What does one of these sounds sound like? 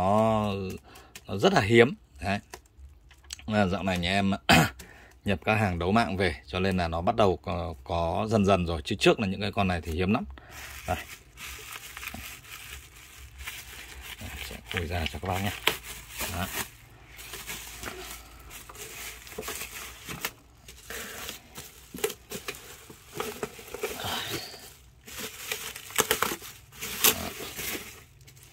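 Plastic bubble wrap rustles and crinkles as hands handle it.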